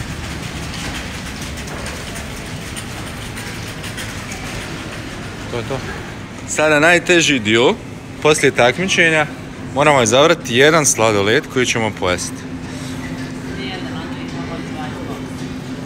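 A shopping cart rolls over a tiled floor.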